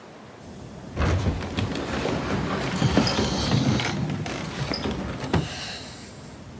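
A wooden door slides open with a rattle.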